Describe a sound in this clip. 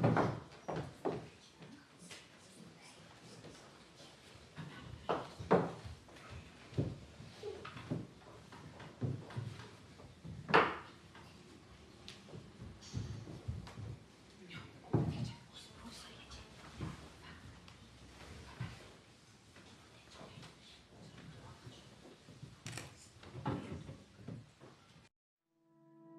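A woman speaks softly on a stage.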